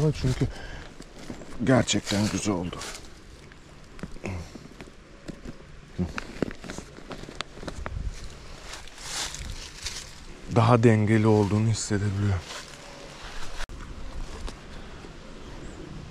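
Fabric of a bag rustles as hands handle it.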